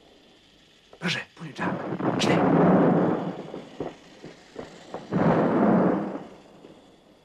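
Objects crash and clatter loudly.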